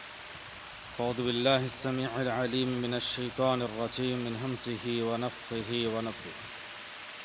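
A man recites in a low chanting voice through a microphone.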